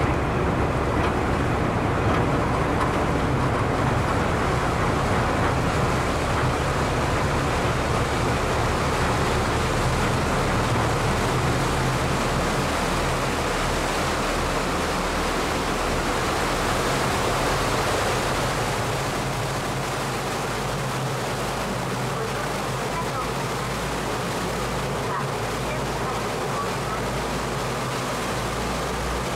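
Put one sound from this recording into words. Churning water rushes and splashes behind a moving boat.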